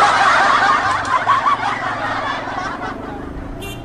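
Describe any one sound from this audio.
Men and women chatter nearby along a busy street.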